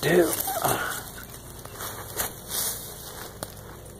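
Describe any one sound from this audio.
Leaves rustle close by as they brush past.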